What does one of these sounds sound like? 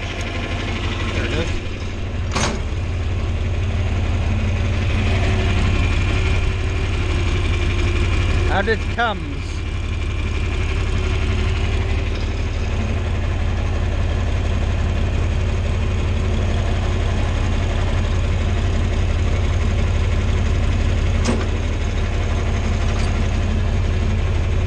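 A tractor engine chugs steadily close by.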